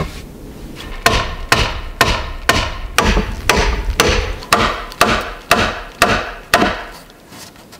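A wooden mallet knocks sharply on a wooden peg.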